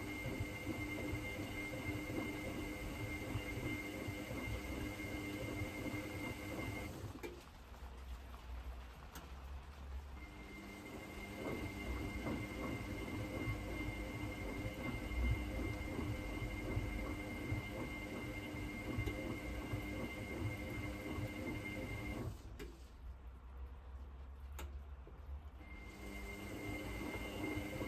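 Water sloshes and churns inside a turning washing machine drum.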